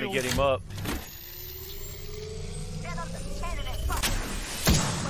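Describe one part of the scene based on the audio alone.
A rising electronic whir charges up steadily.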